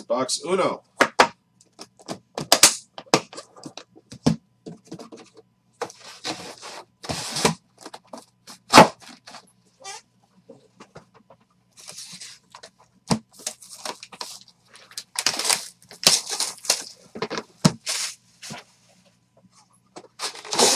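A hard plastic case clicks and clatters as hands handle it.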